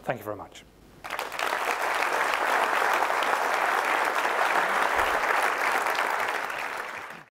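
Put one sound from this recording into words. An audience applauds loudly in a large hall.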